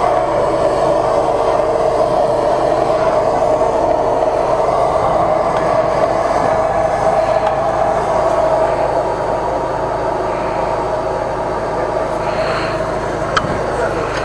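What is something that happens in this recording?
A rubber hose drags and scrapes along a concrete floor.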